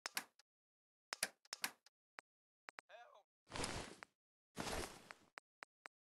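Short soft clicks tick as game menu items are scrolled through.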